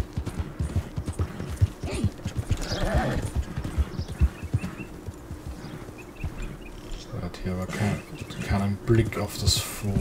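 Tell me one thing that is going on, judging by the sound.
Horse hooves thud on dirt and grass.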